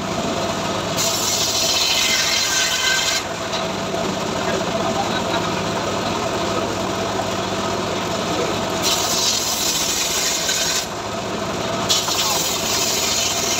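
An engine runs steadily throughout.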